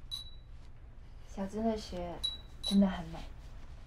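A glass wind chime tinkles softly.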